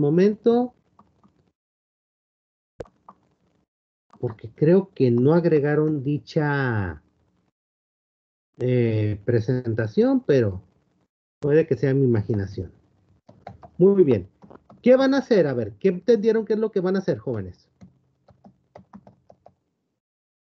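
A middle-aged man speaks calmly through an online call, with pauses.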